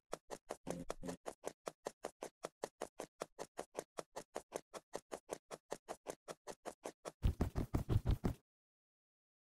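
Quick footsteps tap steadily on stone.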